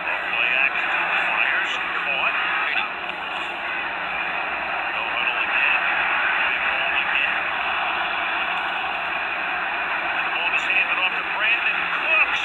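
A stadium crowd roars steadily, heard through a television speaker.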